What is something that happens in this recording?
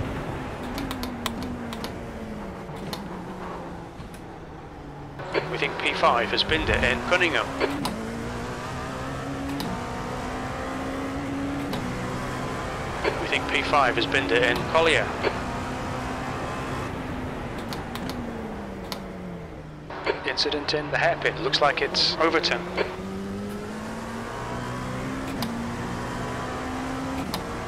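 A racing car engine revs up and down as it shifts gears.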